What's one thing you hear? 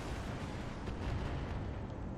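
An explosion bursts with a dull boom.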